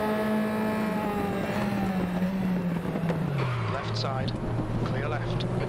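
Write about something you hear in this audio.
A racing car engine winds down to a low drone near the end.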